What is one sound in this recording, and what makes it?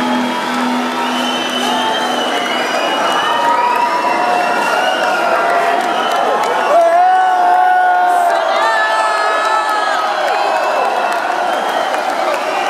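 A crowd cheers and screams in a large echoing hall.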